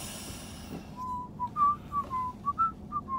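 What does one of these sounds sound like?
A man whistles a tune close by.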